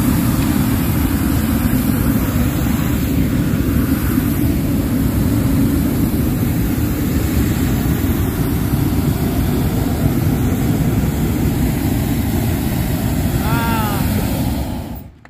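A large fan roars steadily, blowing air into a balloon.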